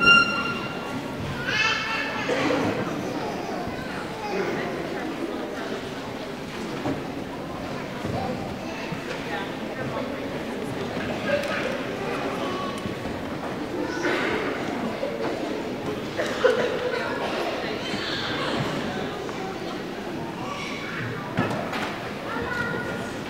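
A concert band plays in a large echoing hall.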